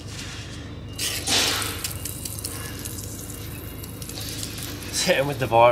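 A spray can hisses as cleaner sprays onto metal parts.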